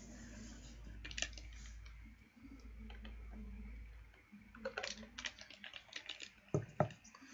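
A plastic bottle crinkles and crackles in a hand.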